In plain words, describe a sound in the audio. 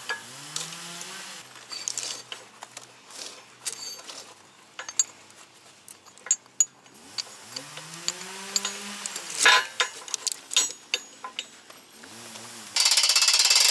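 A small engine sputters without starting.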